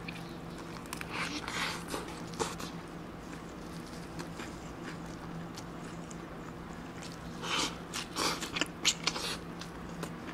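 A young man bites into a soft burger with a crunch.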